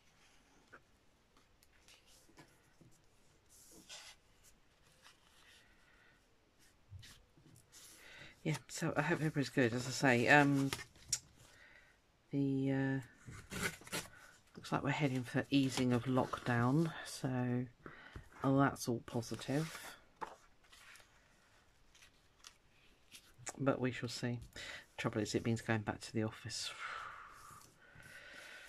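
Paper rustles softly as hands handle it.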